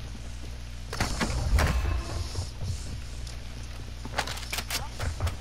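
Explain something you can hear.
A gun is handled and reloaded with metallic clicks.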